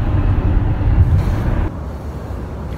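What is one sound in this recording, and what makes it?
A car drives along with a low, steady rumble.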